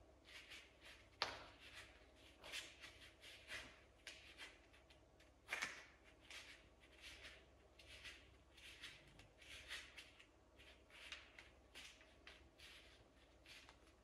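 A young man breathes heavily and rhythmically close by.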